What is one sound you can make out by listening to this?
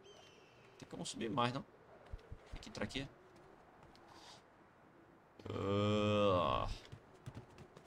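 A young man talks with animation into a microphone, close up.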